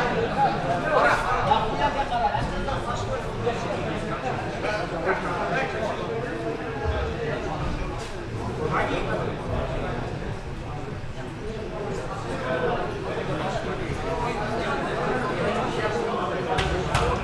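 A crowd of men, women and children chatters throughout a large echoing hall.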